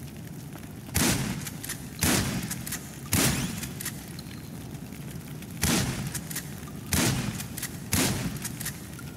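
Loud gunshots fire one at a time and echo.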